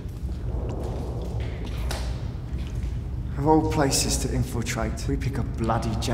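Boots thud on a hard floor as men walk.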